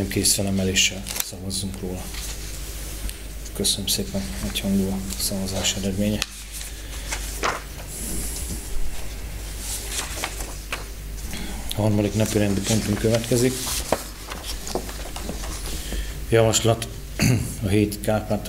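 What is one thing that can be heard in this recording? A middle-aged man speaks calmly through a microphone in an echoing room.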